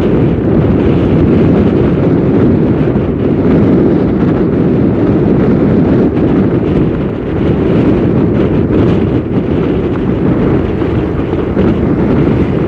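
Tyres rumble steadily on a road as a car drives along.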